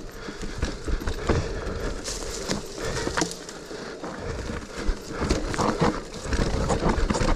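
Bicycle tyres crunch and rumble over a dirt trail.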